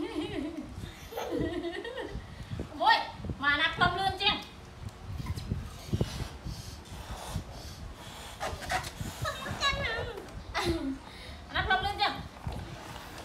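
A young boy talks and laughs.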